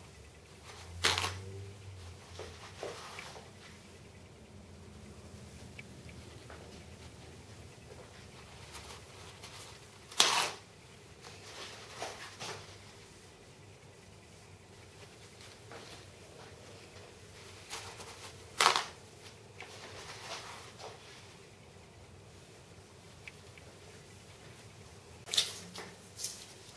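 A sheet of paper towel tears sharply off a roll.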